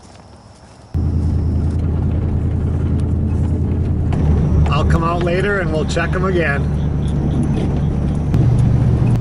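A car engine rumbles steadily while driving along a road.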